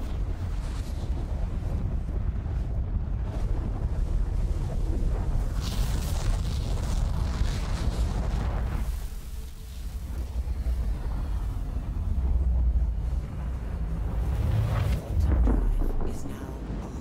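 A spaceship's engines roar with a deep, steady rumble.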